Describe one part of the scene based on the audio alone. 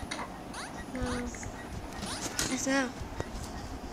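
Short electronic game chimes and beeps sound.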